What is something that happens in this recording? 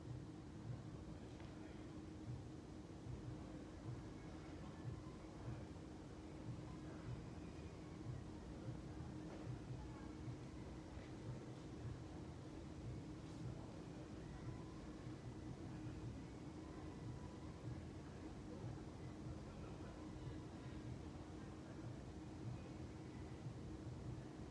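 Footsteps thud softly on a hard floor as a person steps into lunges.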